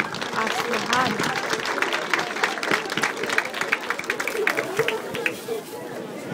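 A crowd claps along in a quick, steady rhythm.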